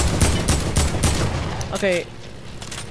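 Rapid gunshots ring out in quick succession.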